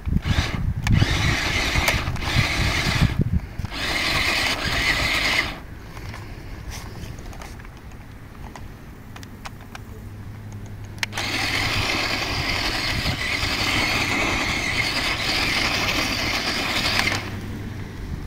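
A toy car's electric motor whines in bursts.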